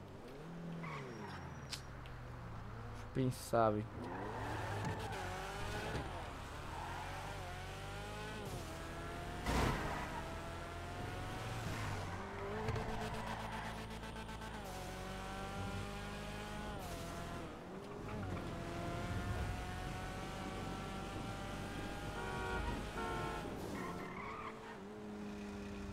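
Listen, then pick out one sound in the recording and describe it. A car engine revs loudly, rising and falling in pitch as gears shift.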